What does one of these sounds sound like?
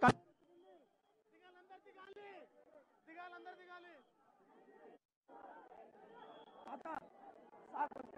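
A crowd of men chatters up close.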